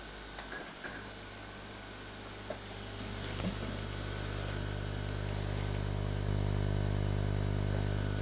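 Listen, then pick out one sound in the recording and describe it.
A race car engine hums steadily through a television speaker.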